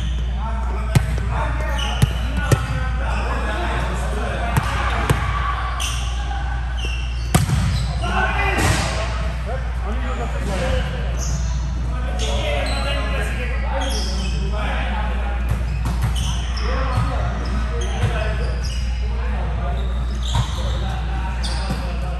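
A volleyball thumps off hands and arms, echoing in a large hall.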